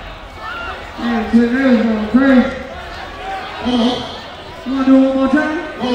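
A man shouts into a microphone through loudspeakers.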